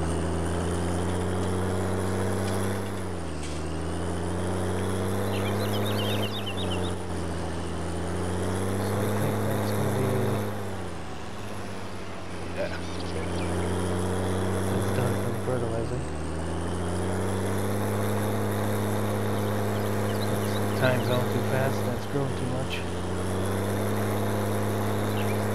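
A tractor engine hums steadily, its pitch dipping and rising as it shifts gears.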